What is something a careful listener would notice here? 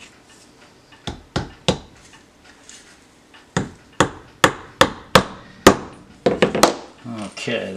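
A rubber mallet taps sharply on a wooden board several times.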